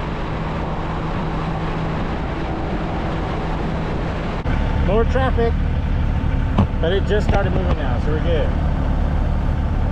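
A motorcycle engine hums steadily at highway speed.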